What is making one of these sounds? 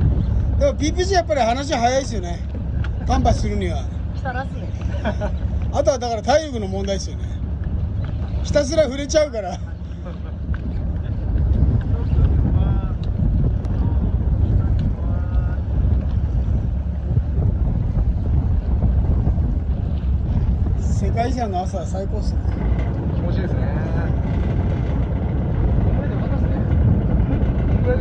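Wind rumbles steadily outdoors on open water.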